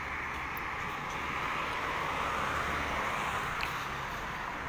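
A car swishes past on the road.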